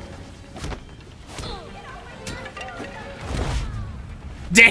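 Punches and kicks thud during a brawl.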